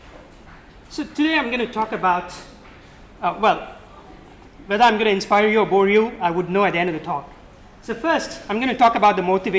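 A man speaks calmly to an audience in a room with a slight echo.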